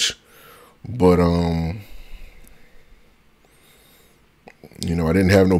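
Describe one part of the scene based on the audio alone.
A man speaks close to a microphone in drawn-out, expressive bursts.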